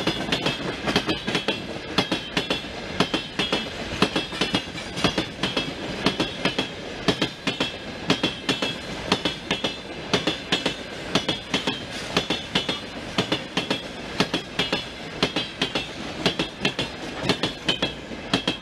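Wheels of a long train of freight wagons clack rhythmically over rail joints as it passes at speed.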